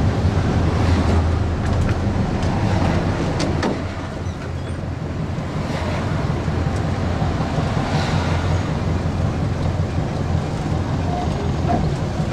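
The body of an old bus rattles and creaks while driving.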